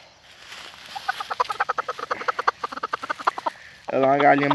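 A hen clucks quickly and softly up close.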